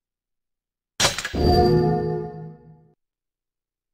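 A game chime rings as saving begins.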